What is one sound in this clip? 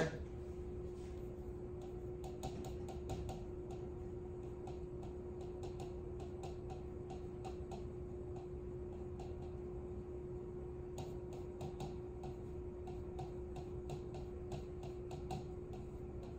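A marker taps and scratches against a board.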